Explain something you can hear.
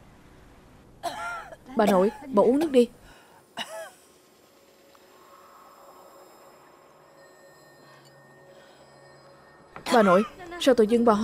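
A young woman speaks gently and close by.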